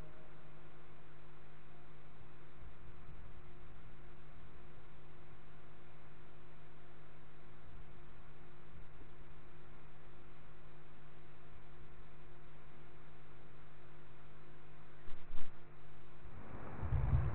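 A fan hums steadily.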